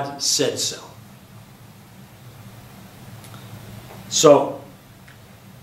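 An elderly man speaks calmly and close by, with short pauses.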